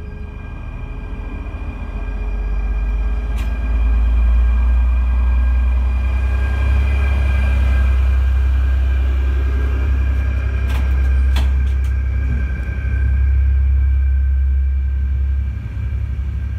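A diesel locomotive rumbles past close by with a deep, loud drone.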